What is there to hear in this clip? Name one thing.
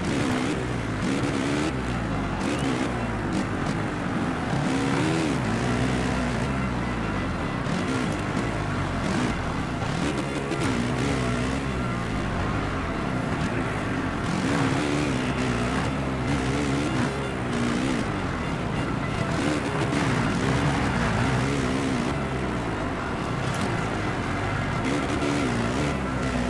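A motocross bike engine revs and whines up and down.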